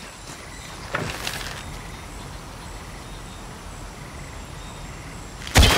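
A bowstring creaks as it is drawn back.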